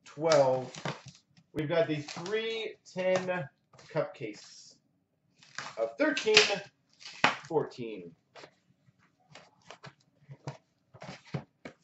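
A cardboard box rustles and scrapes as it is handled and opened.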